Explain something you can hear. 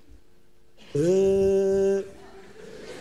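A middle-aged man lets out a long, drawn-out vocal note.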